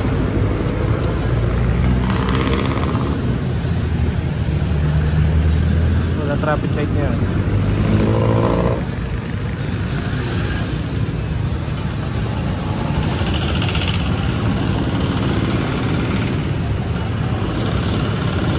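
Car engines hum and idle nearby.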